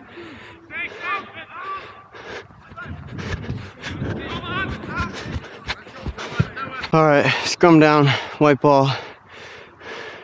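Young men shout and call out to each other outdoors, some close by.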